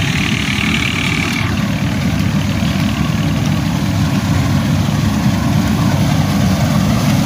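A combine harvester engine rumbles steadily nearby.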